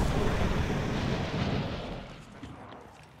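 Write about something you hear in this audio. A rushing whoosh roars loudly and fades away.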